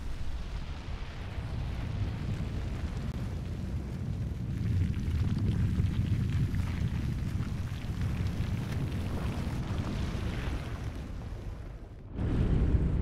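A deep rumble of stone rising from the ground grows and rolls on.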